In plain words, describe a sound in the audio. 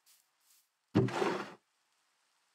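A wooden barrel creaks open.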